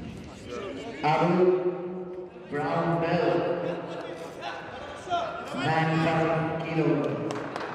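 A man speaks loudly, echoing through a large hall.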